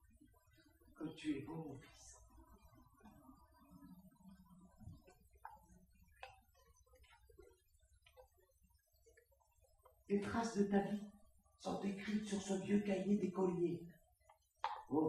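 An elderly woman speaks clearly, as if performing on a stage.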